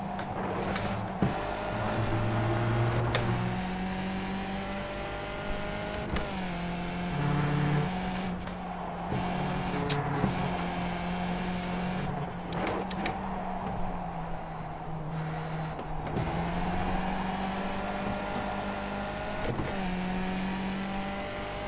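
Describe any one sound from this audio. A racing car engine whines loudly, its pitch rising and dropping with gear changes.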